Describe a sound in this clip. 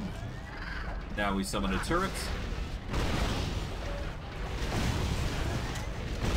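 Blows thud against monsters in a fight.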